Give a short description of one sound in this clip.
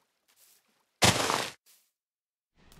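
Leaves rustle and break with a sharp crunch.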